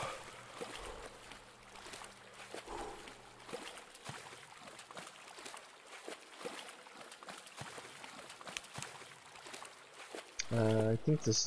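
Footsteps wade and splash through shallow water.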